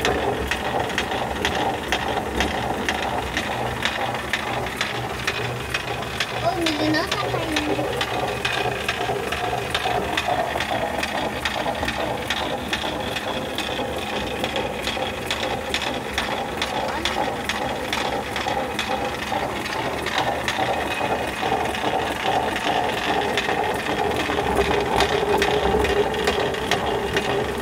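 A wooden shoe clatters rapidly against the grain spout.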